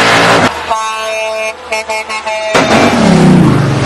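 A heavy truck engine revs loudly.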